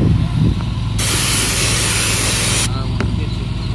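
A sprayer hisses as it blows a fine mist.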